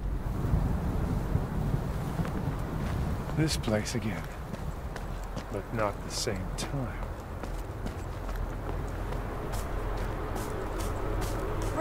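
Footsteps tread on soft ground outdoors.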